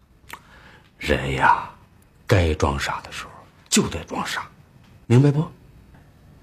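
An older man speaks firmly and calmly close by.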